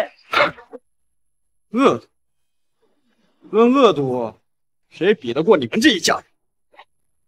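A young man speaks mockingly, close by.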